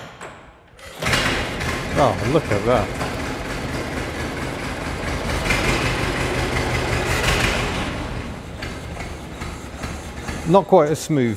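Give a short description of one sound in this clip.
An old car engine starts and idles with a steady chugging rumble.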